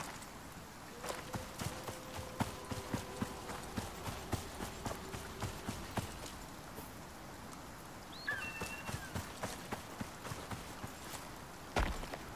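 Footsteps rustle through tall grass.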